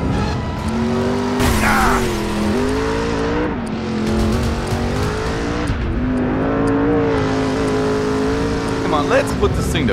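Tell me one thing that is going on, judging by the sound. A car engine roars steadily, rising and dropping in pitch as it shifts gears.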